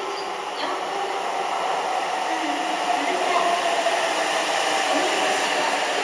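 A train's brakes squeal with a falling tone.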